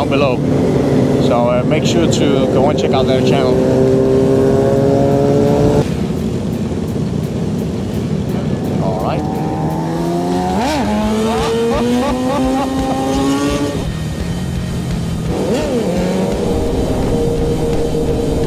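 Motorcycle engines rumble and rev nearby.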